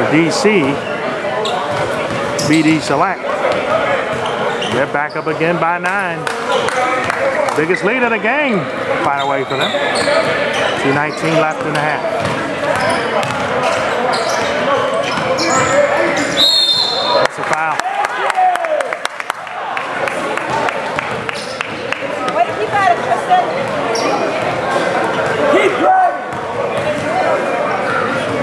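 Young men shout to each other across an echoing gym.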